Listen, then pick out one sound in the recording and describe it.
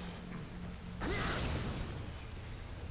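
A sword slashes and strikes.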